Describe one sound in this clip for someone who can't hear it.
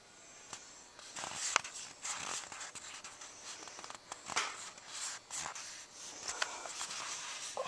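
A cardboard pack rustles and clicks as it is opened and handled.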